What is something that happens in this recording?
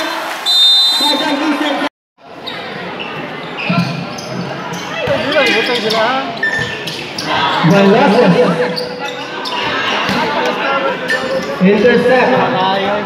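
A crowd of spectators chatters and shouts loudly outdoors.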